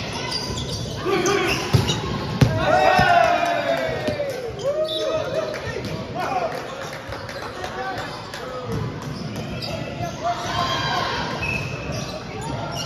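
Men shout and call out during the rally.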